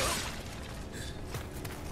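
A spear whooshes through the air.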